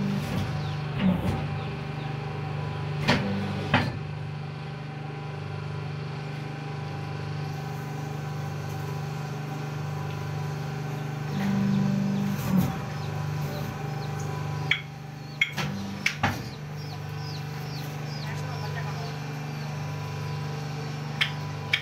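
A machine hums steadily with a low drone.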